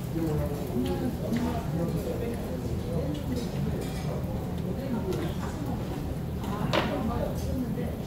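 Metal tongs clink against the grill.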